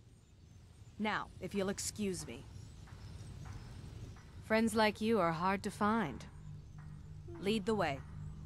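A young woman speaks calmly and smoothly, close by.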